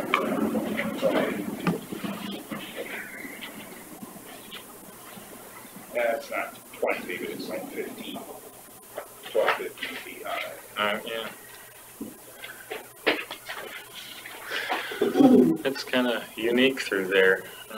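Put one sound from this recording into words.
A middle-aged man talks calmly in a small room, heard through a room microphone.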